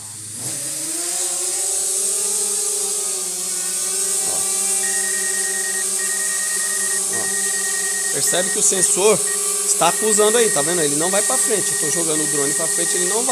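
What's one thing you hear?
A small drone's propellers whine steadily up close, rising in pitch as it lifts off.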